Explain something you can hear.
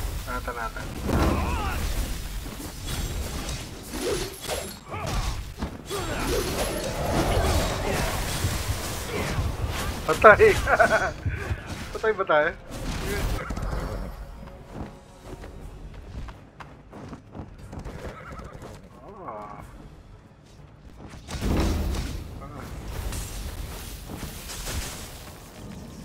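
Magic blasts burst and whoosh loudly.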